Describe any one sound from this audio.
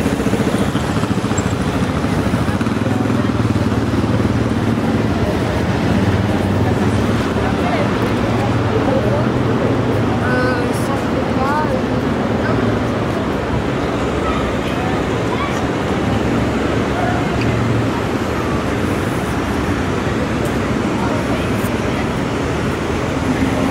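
Traffic hums steadily nearby outdoors.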